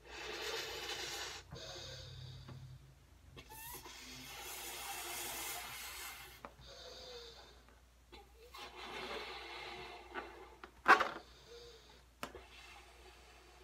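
A person blows hard into a long balloon in bursts of breath.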